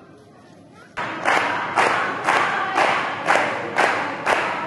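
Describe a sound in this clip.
A group of women clap their hands in a steady rhythm.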